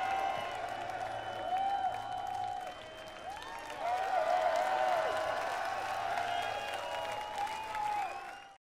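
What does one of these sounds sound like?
A large outdoor crowd cheers and applauds loudly.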